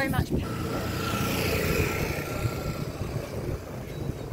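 A motor scooter drives past.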